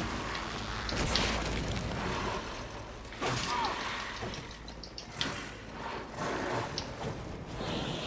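Game blades clash and swish sharply.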